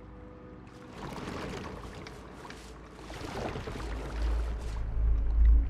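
An oar splashes and dips in water.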